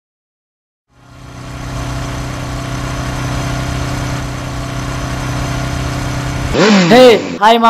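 A motorbike engine hums as it approaches.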